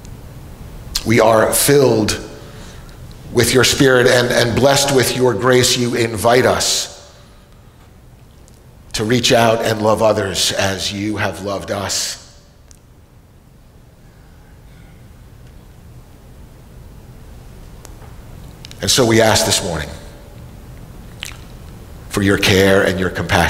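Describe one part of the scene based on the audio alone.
An elderly man speaks calmly and with feeling, with pauses, in a room that echoes slightly.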